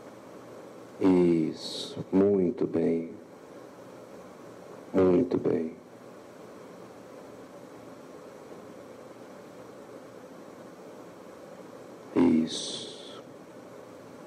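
A woman speaks haltingly and with emotion into a nearby microphone, in short bursts between long pauses.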